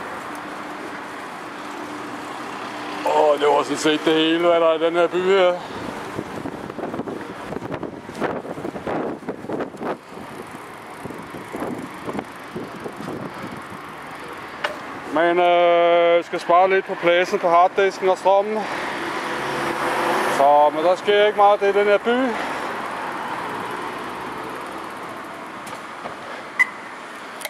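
Traffic hums steadily on a nearby road outdoors.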